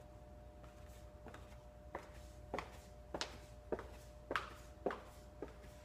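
High heels click on a hard floor, walking away.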